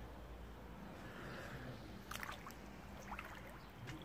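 Water splashes as two people duck their heads under.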